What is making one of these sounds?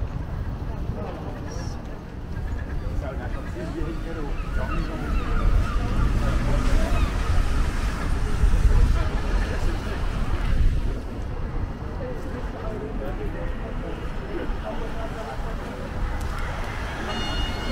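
People chatter nearby on a busy street.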